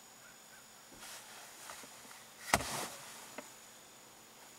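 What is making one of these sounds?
A large bird ruffles and shakes its feathers close by.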